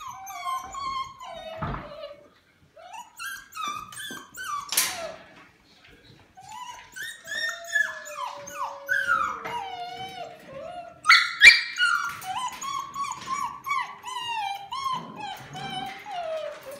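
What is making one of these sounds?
Several puppies whine and yelp in high, wavering cries.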